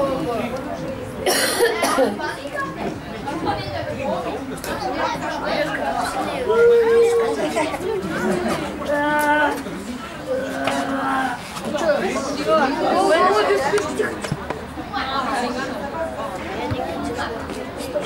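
Men talk nearby in a crowd of spectators, outdoors.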